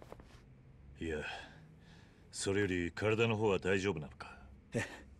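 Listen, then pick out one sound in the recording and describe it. A man asks calmly.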